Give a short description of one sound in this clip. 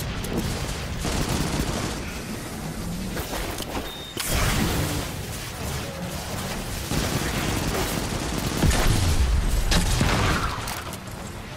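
Rapid gunfire rattles and booms.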